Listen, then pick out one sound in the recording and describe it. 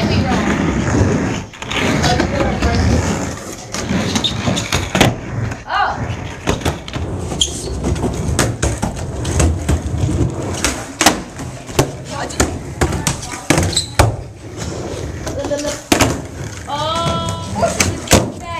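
A skateboard deck clacks and slaps against the floor.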